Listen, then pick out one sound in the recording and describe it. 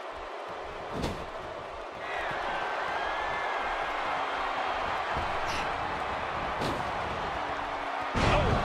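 Heavy thuds of bodies striking each other and hitting the ring mat ring out.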